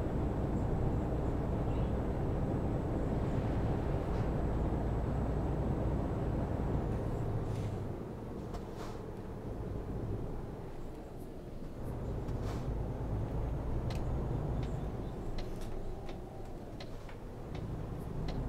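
A truck engine drones steadily.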